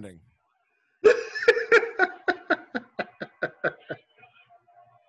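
A man laughs loudly in bursts over an online call.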